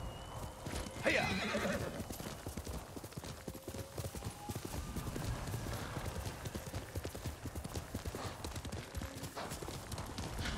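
A horse's hooves thud quickly on soft ground as it gallops.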